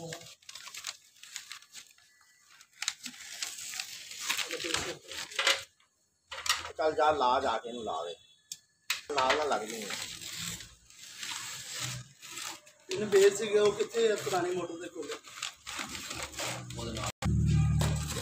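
Paper crinkles and rustles as it is pressed and folded by hand.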